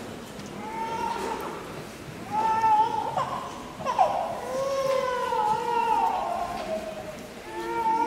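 A woman sings softly in a large echoing hall.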